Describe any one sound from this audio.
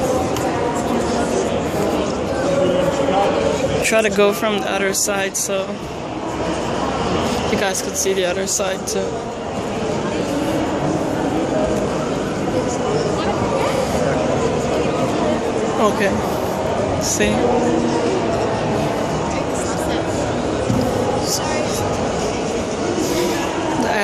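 A crowd chatters steadily all around in a large echoing hall.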